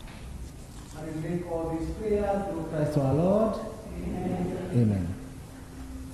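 A man sings through a microphone in an echoing hall.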